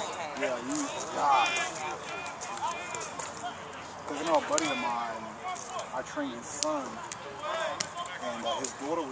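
Several young men talk and call out across an open outdoor field.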